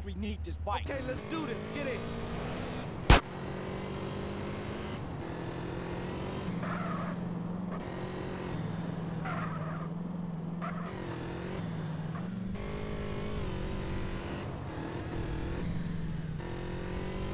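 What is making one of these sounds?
A motorbike engine hums steadily and revs as it rides along.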